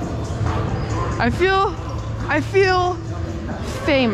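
A volleyball is struck with a slap.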